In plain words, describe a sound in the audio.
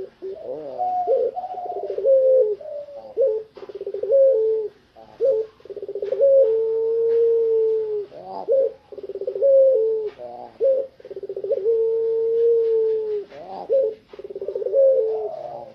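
A dove coos repeatedly with deep rolling calls.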